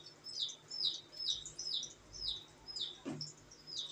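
Oil pours into a metal pan.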